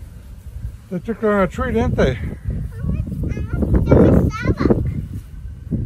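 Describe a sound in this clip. A little girl talks in a high voice close by, with excitement.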